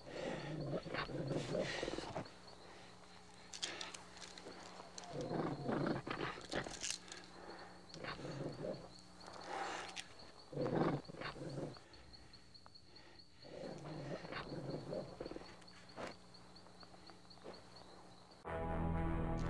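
A man speaks tensely and breathes hard, close by.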